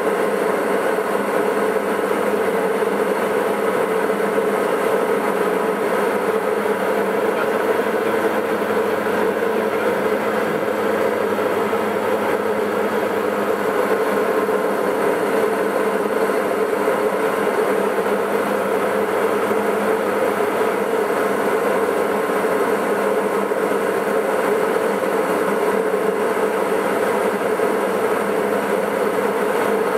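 A single-engine propeller plane drones steadily, heard from inside the cockpit.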